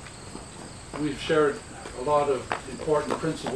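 A man speaks calmly nearby, outdoors.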